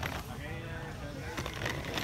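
Suitcase wheels rumble over paving.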